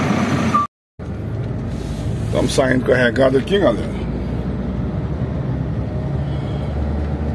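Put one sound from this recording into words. A truck engine hums from inside the cab while driving.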